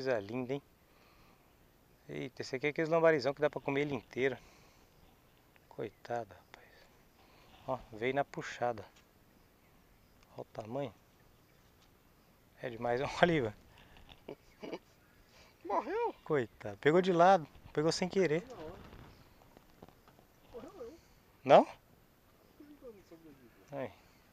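A man talks calmly and closely, in short bursts with pauses.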